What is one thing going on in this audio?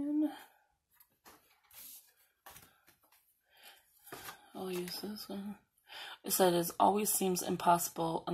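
A sheet of stickers rustles as a sticker is peeled off.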